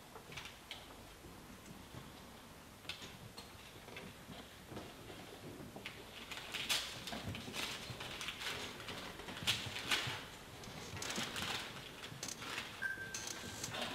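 Footsteps shuffle and knock on a wooden stage floor.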